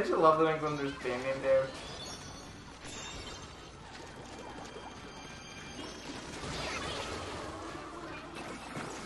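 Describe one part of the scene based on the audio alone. Paint splatters wetly in quick bursts.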